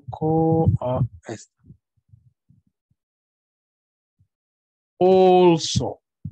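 A man speaks slowly and clearly over an online call, with pauses.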